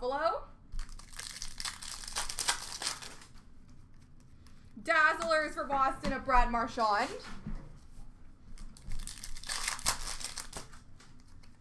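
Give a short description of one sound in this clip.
Plastic wrapping crinkles as hands handle it up close.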